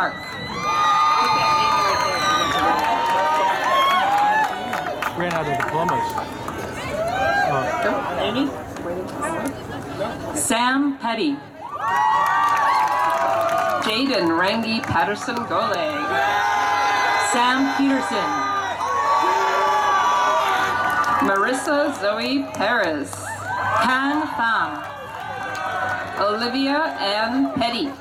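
A woman reads out through a loudspeaker outdoors.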